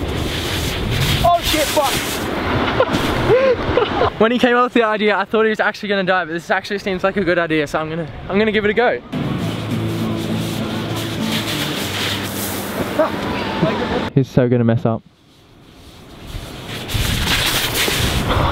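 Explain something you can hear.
A board slides and scrapes down loose sand.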